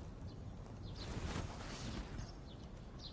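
Bedding rustles as someone turns over in bed.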